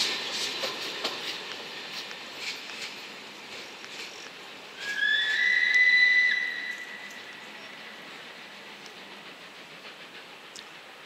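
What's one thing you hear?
A passing train's wheels clatter over the rail joints and fade into the distance.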